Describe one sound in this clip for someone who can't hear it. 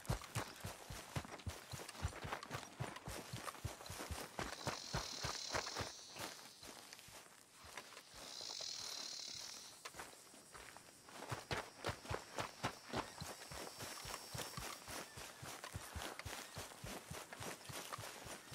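Footsteps thud quickly and evenly on grass and dirt.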